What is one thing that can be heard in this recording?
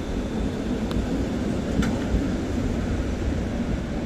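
A tram rolls past with a low rumble.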